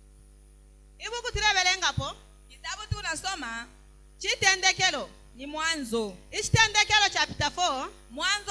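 A woman sings loudly through a microphone and loudspeakers in an echoing room.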